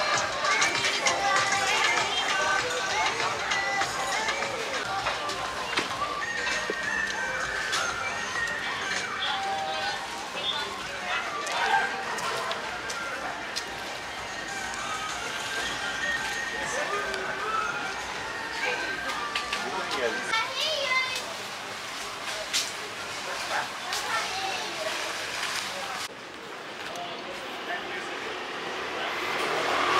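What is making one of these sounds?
Men and women chatter at a distance outdoors.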